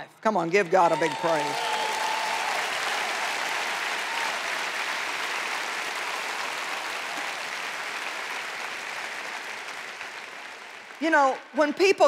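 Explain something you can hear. A large crowd applauds in a big hall.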